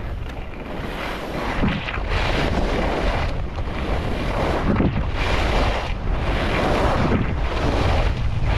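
Wind rushes past close by.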